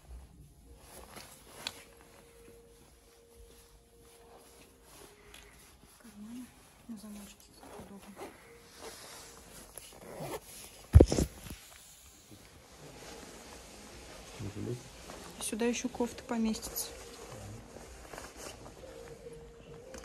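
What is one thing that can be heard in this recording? Jacket fabric rustles as it is handled.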